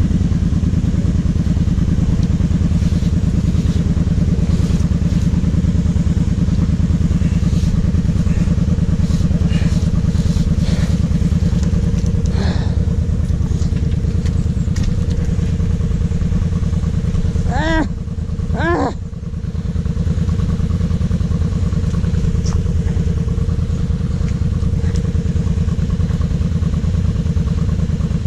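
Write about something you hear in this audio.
A quad bike engine idles with a loud, steady rumble close by.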